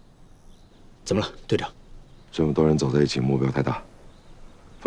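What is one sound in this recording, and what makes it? A man speaks calmly and firmly, close by.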